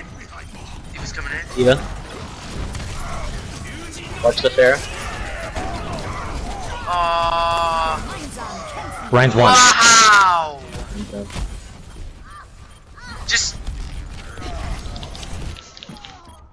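Video game gunfire and energy blasts crackle and boom.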